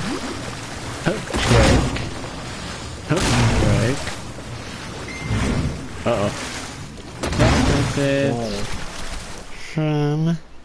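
Water rushes and swooshes in loud bursts.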